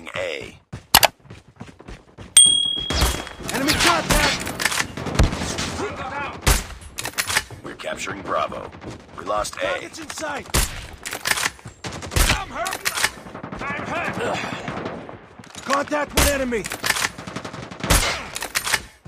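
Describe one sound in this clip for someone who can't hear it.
Sniper rifle shots crack sharply now and then.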